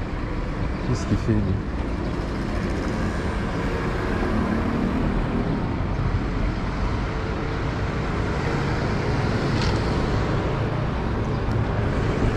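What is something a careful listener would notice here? Footsteps tread on pavement outdoors.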